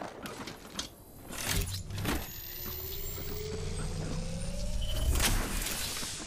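A device charges with a rising whine.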